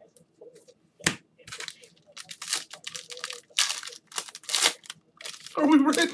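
Foil packaging crinkles and tears as it is ripped open.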